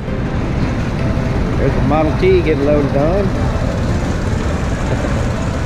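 A vintage car engine runs as the car rolls slowly onto a ferry ramp.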